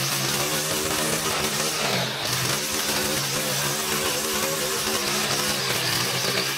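A string trimmer engine whines steadily and wavers in pitch nearby.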